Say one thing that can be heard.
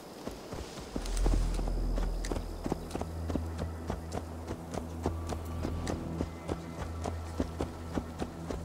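Horse hooves thud at a steady gallop.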